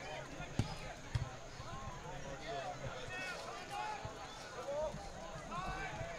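Players shout and call out to each other across an open field.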